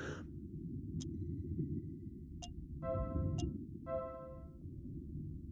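Short electronic chimes beep as items are picked from a menu.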